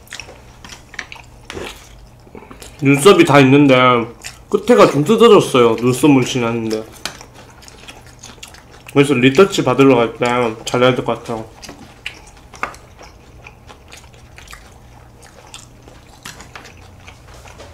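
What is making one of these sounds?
A young man chews food close to the microphone.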